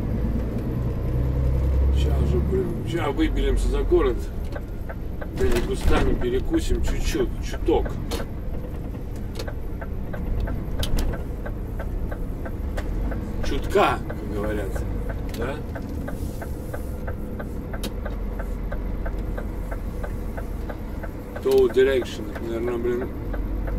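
A bus engine hums low and steady as it drives along.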